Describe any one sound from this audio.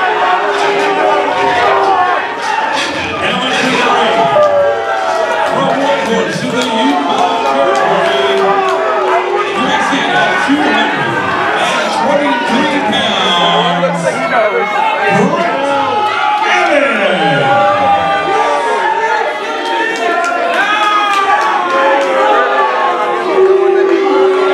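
A crowd cheers and shouts throughout.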